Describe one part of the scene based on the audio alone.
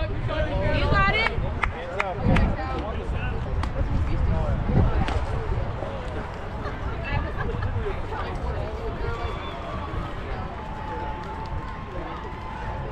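Young players shout and chant from across an open field.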